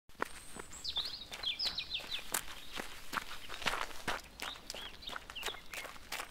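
Running footsteps patter on a path.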